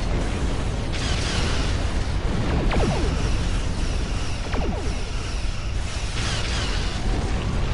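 Energy weapons crackle and zap.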